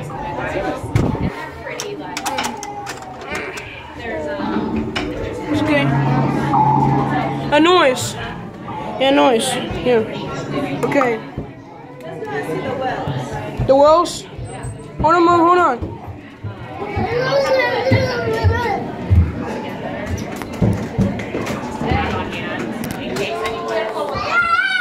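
Young people talk and shout nearby.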